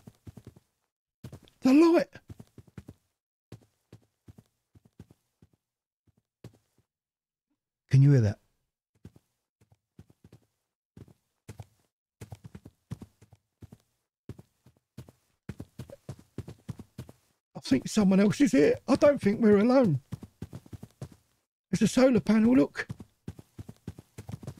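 Footsteps tread softly over grass and gravel.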